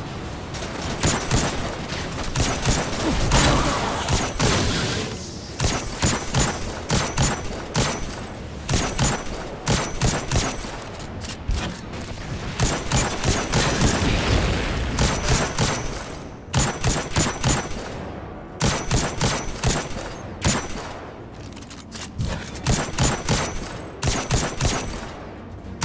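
A rifle fires in quick bursts of sharp shots.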